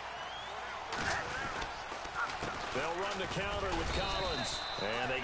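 Football players thud together in a tackle.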